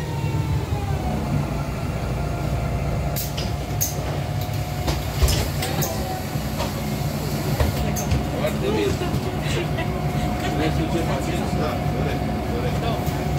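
A bus engine rumbles steadily while the bus drives along.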